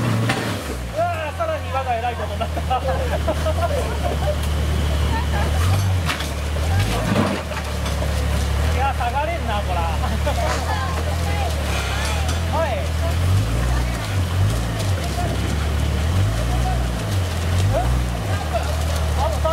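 Men talk outdoors nearby.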